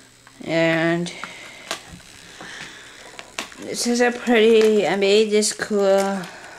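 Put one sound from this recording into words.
A small toy motor whirs as plastic gears turn.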